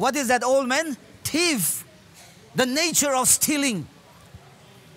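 A man speaks loudly through a microphone, in a large echoing hall.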